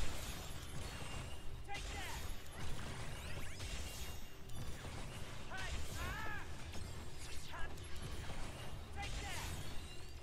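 Magic blasts crackle and burst.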